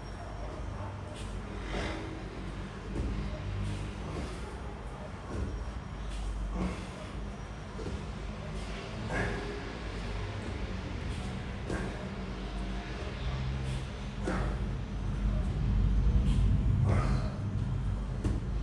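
A body shuffles and thumps softly on a floor mat.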